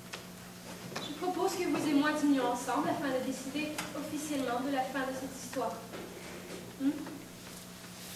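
A man sings on a stage through a microphone, in a large hall.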